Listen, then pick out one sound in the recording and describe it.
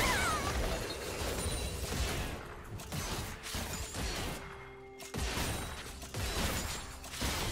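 Game spell effects and weapon hits crackle and burst in quick succession.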